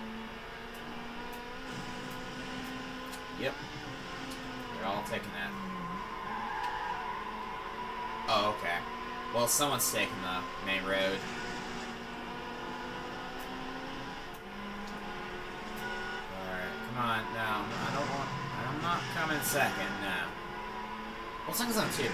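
A racing game's car engine roars steadily through a small speaker.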